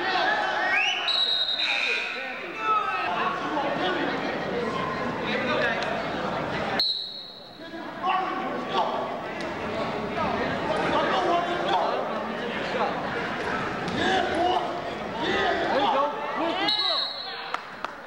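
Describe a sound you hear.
Shoes squeak sharply on a wrestling mat.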